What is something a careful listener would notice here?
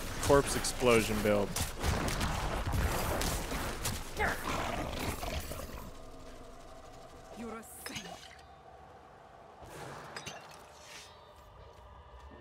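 Weapons clash and spells burst in a game fight.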